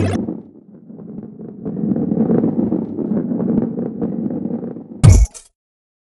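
A ball rolls with a low rumble along a wooden track.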